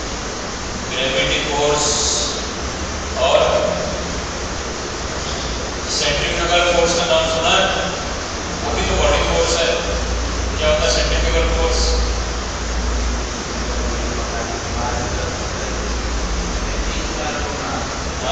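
A young man speaks calmly, as if lecturing.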